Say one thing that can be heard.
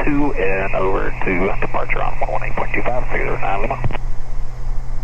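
A man speaks over an aviation headset intercom.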